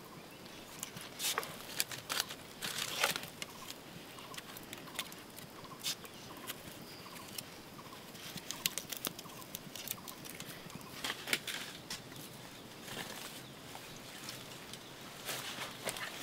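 Leaves and twigs rustle and crackle.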